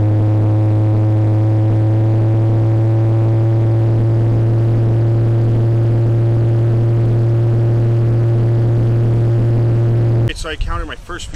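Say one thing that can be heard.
An old truck engine drones loudly and steadily while driving on a highway.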